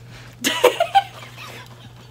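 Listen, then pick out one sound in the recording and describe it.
A young woman laughs loudly nearby.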